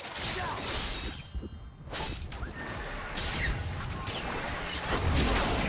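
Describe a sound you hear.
Magic spells whoosh and crackle in a fantasy battle game.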